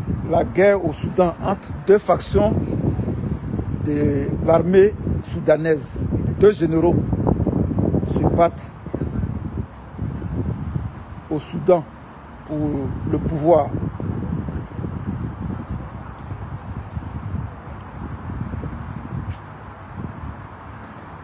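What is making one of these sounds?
Wind rumbles against a microphone outdoors.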